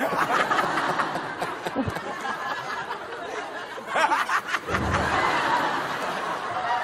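An audience laughs loudly in a studio.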